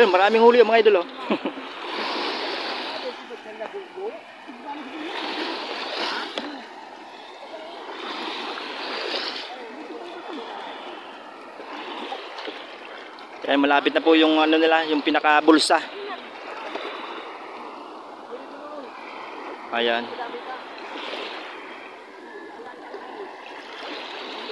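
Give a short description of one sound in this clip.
A wet fishing net swishes and drags through shallow water.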